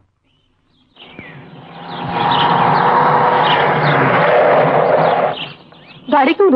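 A car engine drives past outdoors.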